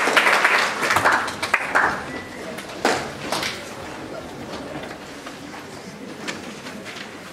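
Chairs and instruments clatter as a band sits down.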